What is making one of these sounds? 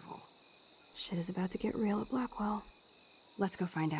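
Another young woman speaks quietly.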